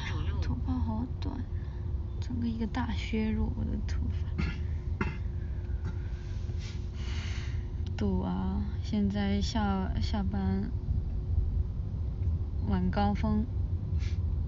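A young woman talks softly and close to a microphone.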